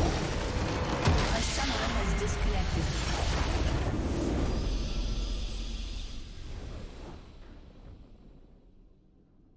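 A huge structure explodes with a loud crackling rumble that fades away.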